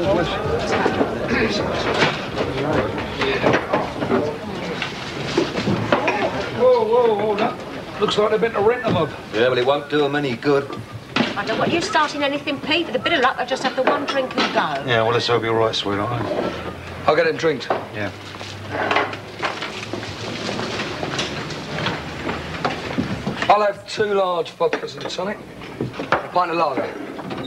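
A crowd of men and women chatter in a busy, echoing room.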